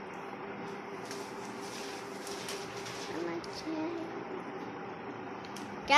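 Newspaper pages rustle and crinkle as they are turned.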